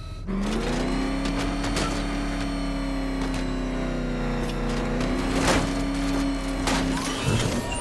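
A powerful engine roars steadily as a vehicle speeds along.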